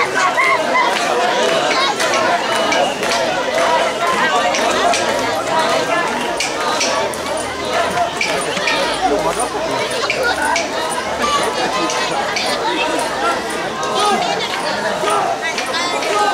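Small metal bells and fittings on a shrine float jingle as it sways.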